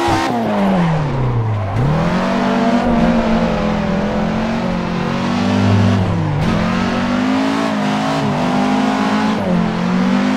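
Tyres squeal on asphalt.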